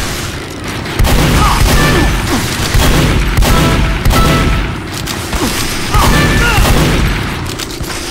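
A shotgun fires repeatedly with loud blasts.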